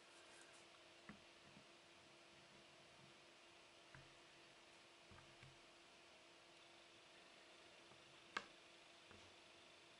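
Jigsaw puzzle pieces click and rustle softly as a hand moves them on a table.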